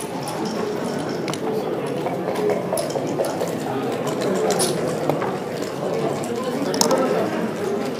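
A game clock button is pressed with a click.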